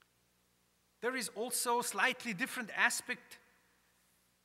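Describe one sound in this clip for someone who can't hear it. A man chants in a sung voice through a microphone, echoing in a large hall.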